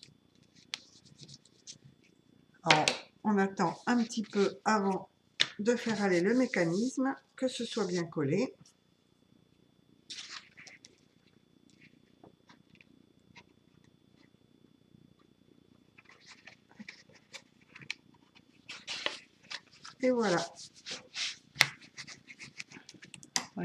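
A plastic tool scrapes along paper, creasing a fold.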